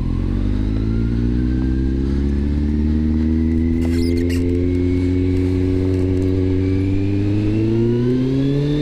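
A motorcycle engine hums close by and slowly rises in pitch as it speeds up.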